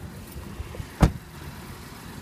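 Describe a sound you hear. A car door shuts with a solid thud.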